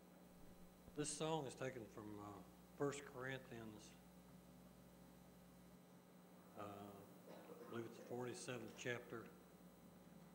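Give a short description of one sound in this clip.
An elderly man speaks calmly into a microphone, heard through a loudspeaker.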